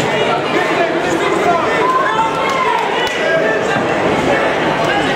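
A crowd of spectators chatters and shouts throughout a large echoing hall.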